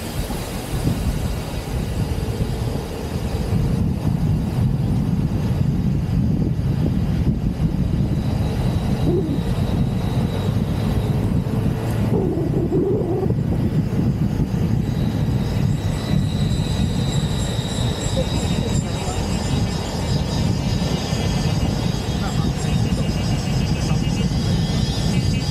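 A car engine rumbles steadily as the car drives along.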